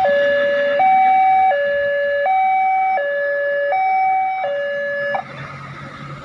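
A level crossing alarm sounds a loud two-tone warning, alternating steadily.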